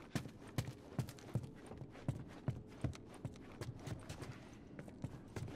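Footsteps thud on a wooden staircase and floor.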